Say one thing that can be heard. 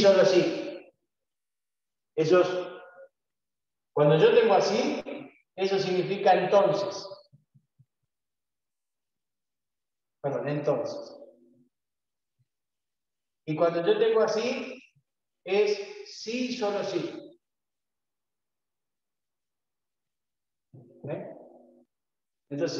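A middle-aged man speaks calmly in short phrases.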